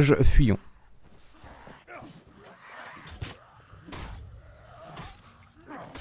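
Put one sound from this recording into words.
An axe strikes a body with heavy thuds.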